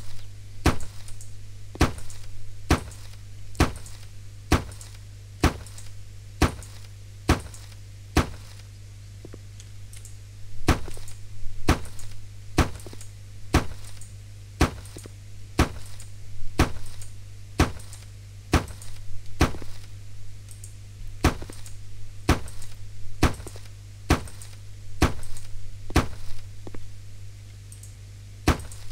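A hammer taps sharply on a floor, again and again at a steady pace.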